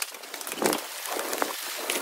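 Heavy rain pours down outdoors.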